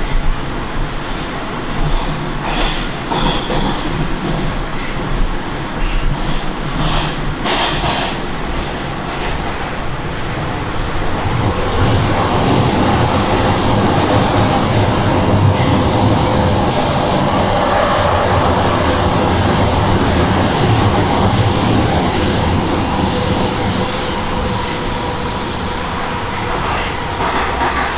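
A subway train rumbles and rattles along the tracks.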